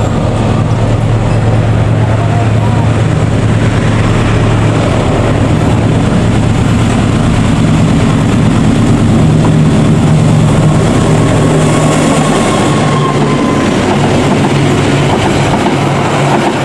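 A diesel locomotive engine rumbles loudly as it approaches and passes close by.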